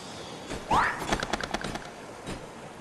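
Swords clash and slash in a fast video game fight.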